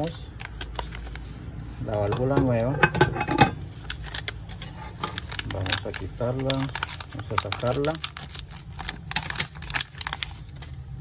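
A plastic bag crinkles in someone's hands.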